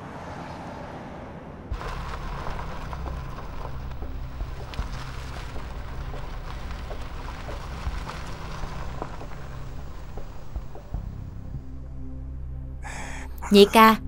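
A car engine hums as a car drives slowly.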